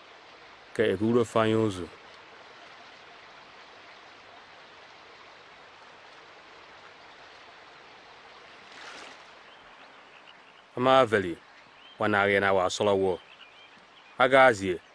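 A man speaks calmly nearby, in short phrases.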